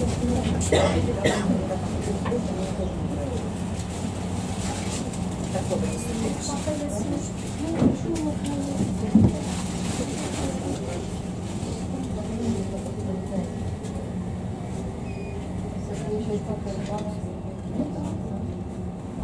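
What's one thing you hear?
A tram's motor hums and rumbles steadily, heard from inside the tram.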